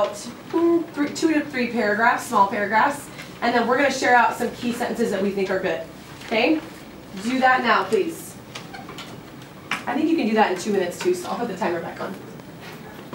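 A young woman speaks clearly and with animation to a room, close by.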